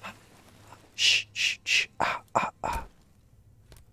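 A young man speaks into a microphone in short bursts.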